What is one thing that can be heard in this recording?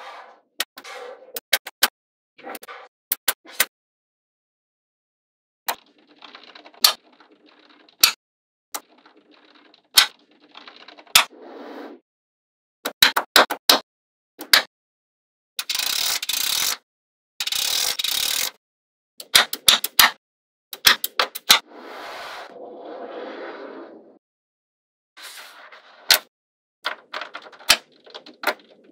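Small magnetic metal balls click and snap together.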